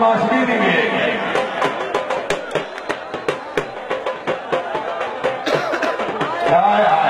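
Many people clap their hands rapidly.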